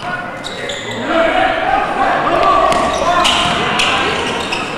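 Young boys shout to each other in an echoing hall.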